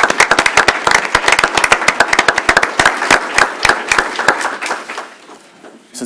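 A small group applauds briskly, then the clapping fades out.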